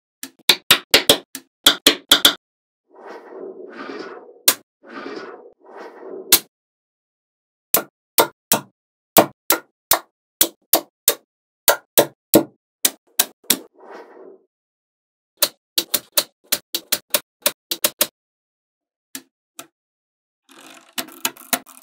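Small magnetic balls click and snap sharply together.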